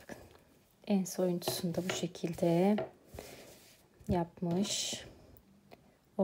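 Crochet fabric rustles softly as it is handled.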